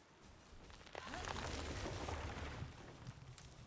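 A campfire crackles and roars up close.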